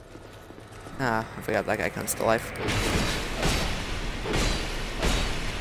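Swords clash and strike.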